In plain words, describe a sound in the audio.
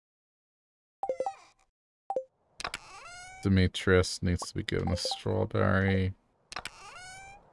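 Short chiming clicks sound as a game menu opens and closes.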